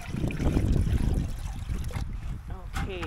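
Water pours from a bucket into a metal feeder.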